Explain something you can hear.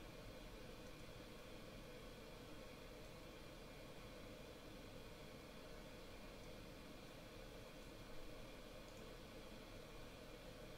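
A steady low engine drone fills an aircraft cockpit.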